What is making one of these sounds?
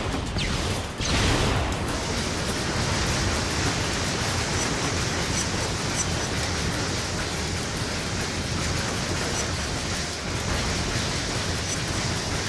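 A flamethrower roars steadily in a video game.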